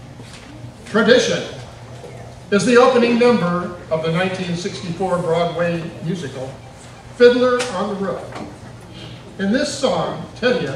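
An elderly man speaks calmly into a microphone over loudspeakers in a large room.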